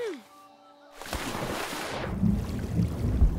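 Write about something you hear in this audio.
Water splashes loudly as a body dives in.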